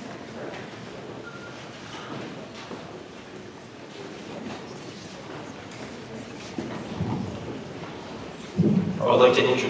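A crowd murmurs and chatters in a large hall.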